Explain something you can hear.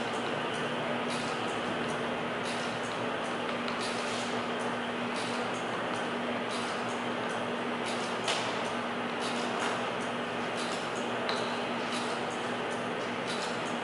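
A man's hands rub and tap against a wire coil.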